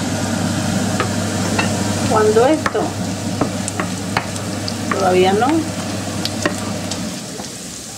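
A wooden spoon scrapes and taps against a frying pan.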